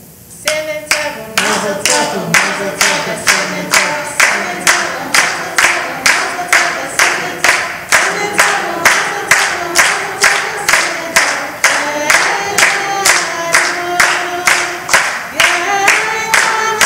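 A group of people clap their hands in a steady rhythm in a large echoing hall.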